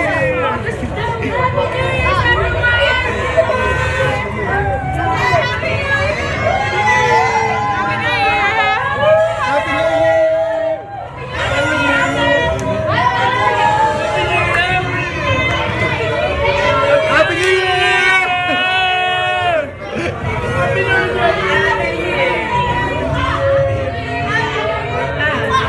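A crowd of young men and women cheers and shouts close by.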